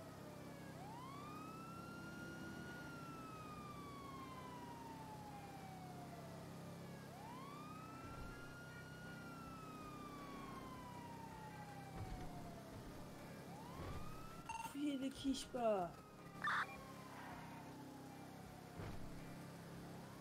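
A car engine revs up sharply and slowly winds down, again and again.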